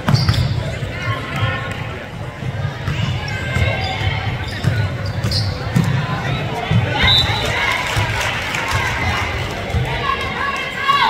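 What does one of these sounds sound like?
A basketball bounces on a hard court in a large echoing gym.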